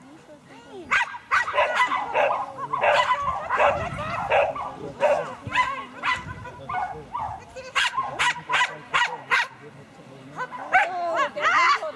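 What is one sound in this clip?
A woman calls out short commands to a dog outdoors.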